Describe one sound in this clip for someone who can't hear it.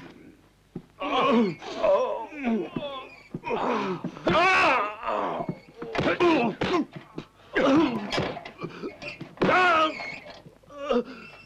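A man shouts in pain and anger nearby.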